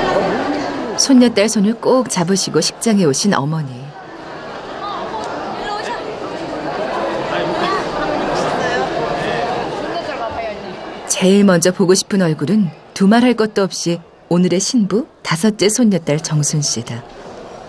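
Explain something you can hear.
An elderly woman speaks softly close by.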